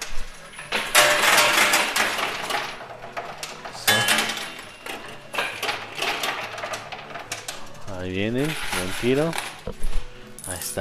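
Metal coins clatter and jingle as they drop and slide.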